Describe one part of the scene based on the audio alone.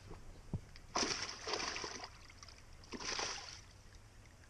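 Water splashes as a landing net is lifted.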